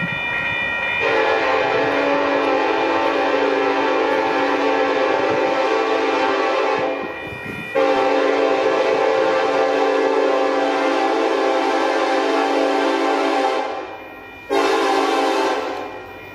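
A locomotive horn blares close by in long, loud blasts.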